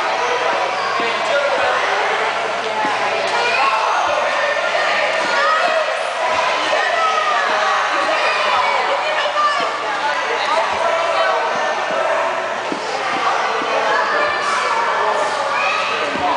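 A young woman talks encouragingly to a child.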